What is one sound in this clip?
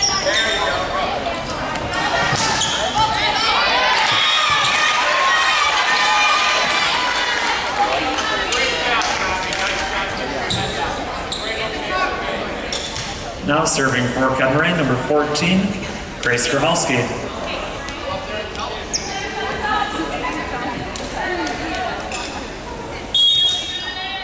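A volleyball is hit with a sharp smack.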